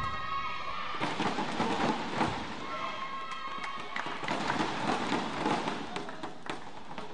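A crowd cheers and claps loudly in an echoing hall.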